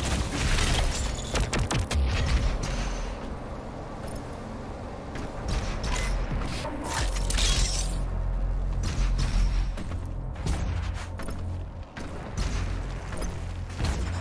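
A heavy gun fires in loud blasts.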